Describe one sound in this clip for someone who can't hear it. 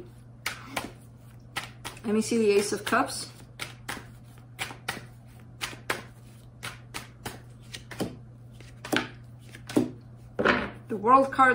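Playing cards riffle and flick as they are shuffled.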